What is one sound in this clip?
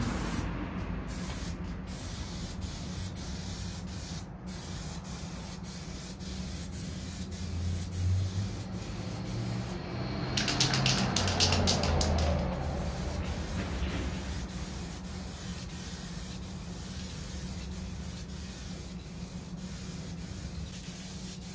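A cloth rubs across a glass pane.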